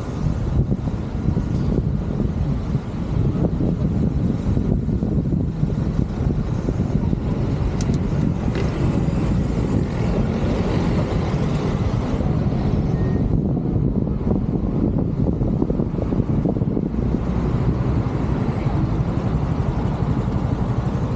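Wind rushes loudly over a microphone.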